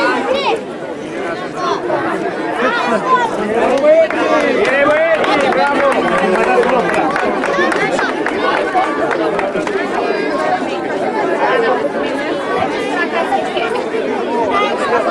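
A crowd of children and adults chatter loudly outdoors.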